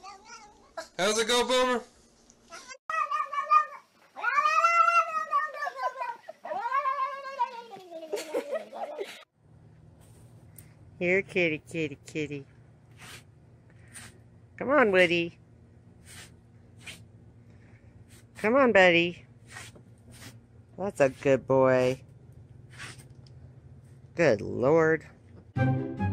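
A cat meows loudly and repeatedly close by.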